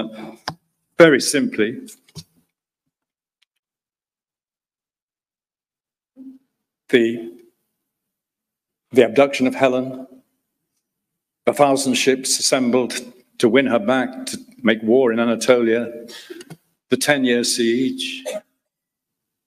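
An older man lectures calmly through a microphone, with pauses between phrases.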